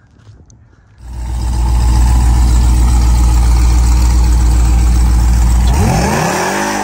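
A truck engine idles with a loud, deep rumble close by.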